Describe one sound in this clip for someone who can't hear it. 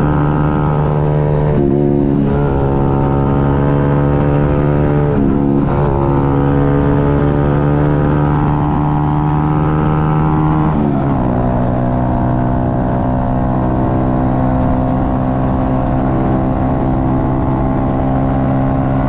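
A motorcycle engine drones steadily up close, its pitch dipping briefly at gear changes and settling lower after a shift.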